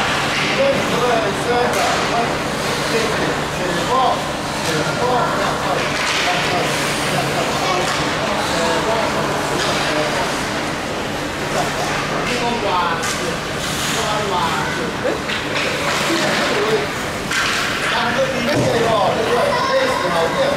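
Children shout and call out across a large echoing rink.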